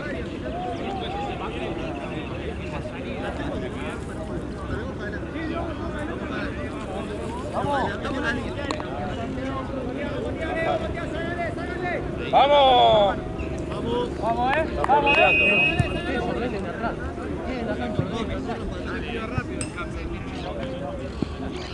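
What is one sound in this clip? Voices of young men call out across an open field.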